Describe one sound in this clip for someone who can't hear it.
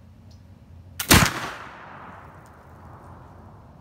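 A gun fires with a loud blast that echoes outdoors.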